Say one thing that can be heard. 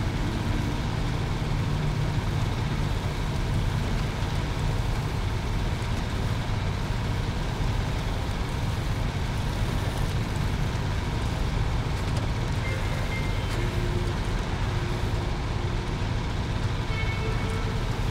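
Tyres squelch through mud.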